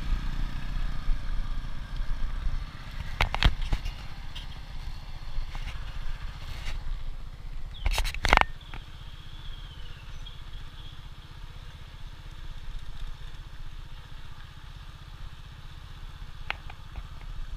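A motorcycle engine hums steadily.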